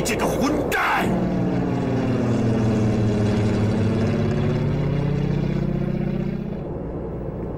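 A propeller plane drones overhead and passes by.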